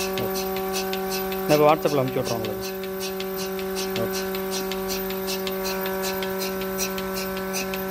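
A milking machine hums steadily.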